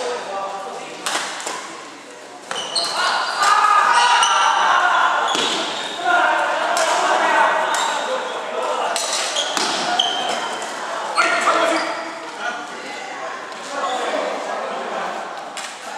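Men talk and call out across an echoing hall.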